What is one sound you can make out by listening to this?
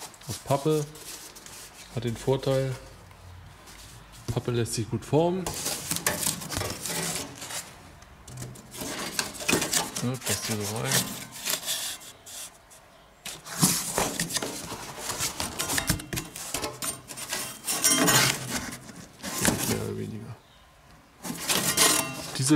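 A sheet of cardboard rustles and scrapes as it is handled.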